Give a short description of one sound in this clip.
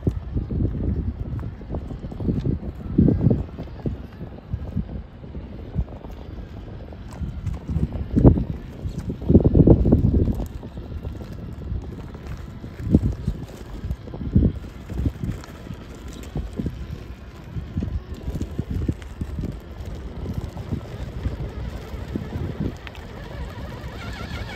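Gravel and small stones crunch and rattle under rubber tyres.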